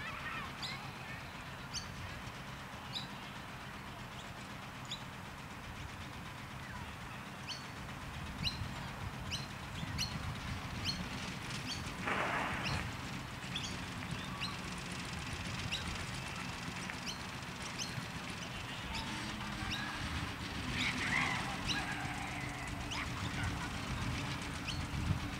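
Wind blows steadily across an open field outdoors.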